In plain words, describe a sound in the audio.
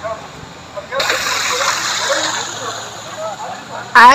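A bicycle's wheels splash through shallow floodwater.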